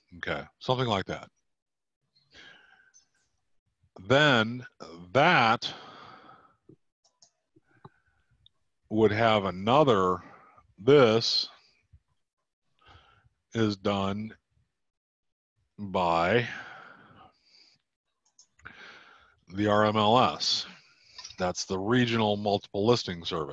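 A man talks calmly into a microphone, with pauses.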